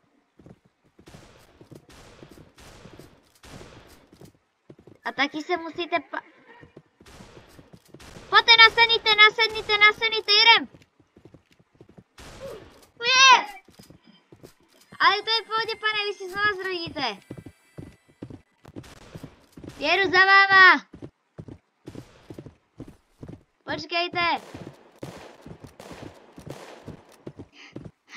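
Horse hooves thud in a steady rhythm as a horse canters and gallops.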